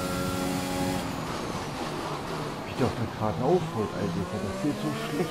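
A racing car engine drops sharply in pitch with rapid crackling pops as the car brakes.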